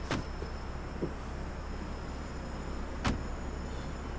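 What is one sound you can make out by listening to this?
A car door opens and slams shut.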